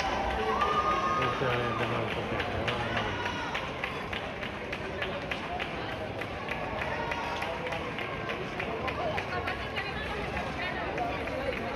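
Many runners' footsteps patter on a street.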